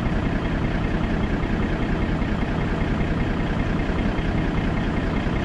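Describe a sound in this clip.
A heavy truck engine rumbles steadily from inside the cab.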